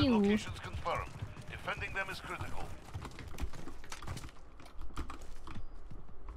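Footsteps crunch quickly on gravel.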